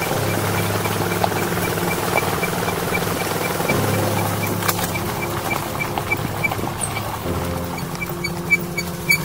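Tyres crunch over a gravel path.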